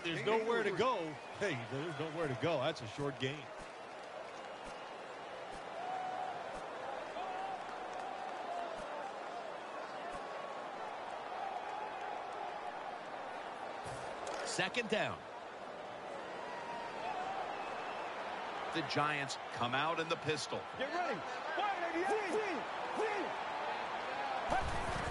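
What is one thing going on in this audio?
A large stadium crowd murmurs and cheers steadily in the distance.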